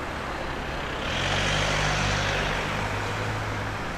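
A car engine idles and rolls past close by.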